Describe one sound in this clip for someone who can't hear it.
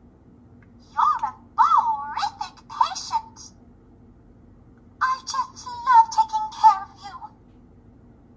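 A toy stethoscope plays short electronic sounds when its button is pressed.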